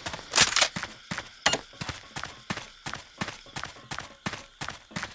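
Footsteps crunch steadily on dirt.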